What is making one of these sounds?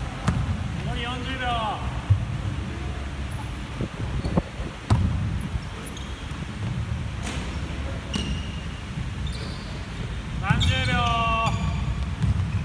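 Sneakers squeak sharply on the floor.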